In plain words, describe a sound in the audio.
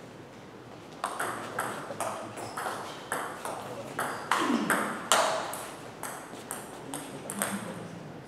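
A ping-pong ball clicks back and forth between paddles and bounces on the table in a large echoing hall.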